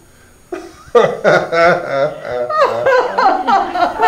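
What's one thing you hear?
An elderly woman laughs loudly.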